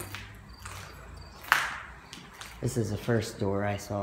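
Footsteps crunch on a littered floor.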